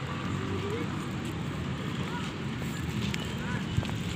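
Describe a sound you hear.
A small child's footsteps patter on wooden boards.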